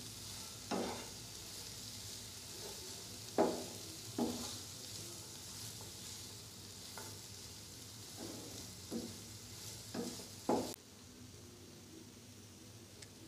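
Food sizzles softly in a hot pan.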